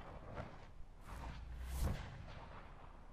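An electric crackling whoosh bursts loudly and fades.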